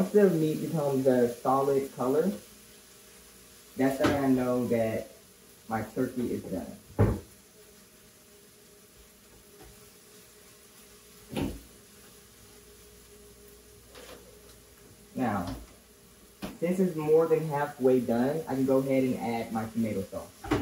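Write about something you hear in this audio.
A woman talks calmly and clearly close by.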